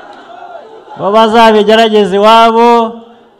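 A man shouts loudly into a microphone over loudspeakers.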